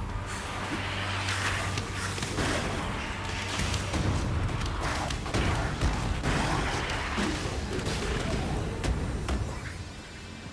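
Magic spells crackle and blast in quick bursts.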